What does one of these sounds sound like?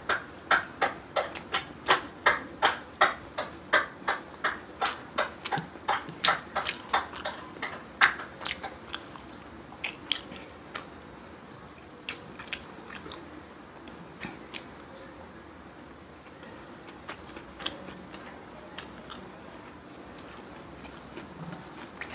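A young woman chews food loudly and wetly, close to a microphone.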